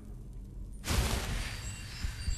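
A magic spell bursts with a bright whoosh.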